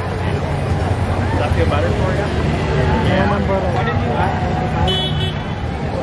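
Motorcycles rumble past.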